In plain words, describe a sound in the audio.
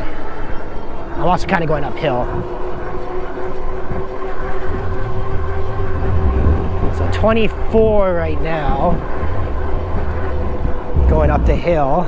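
An electric motor whines steadily.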